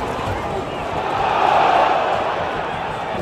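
A crowd cheers loudly and swells.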